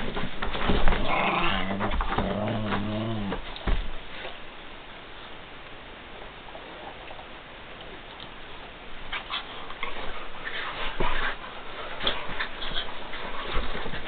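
Dogs scuffle and paw at a cloth on the floor.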